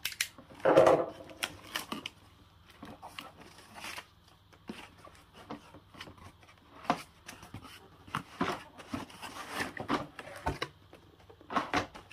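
Cardboard flaps and packaging rustle and scrape as hands handle a box.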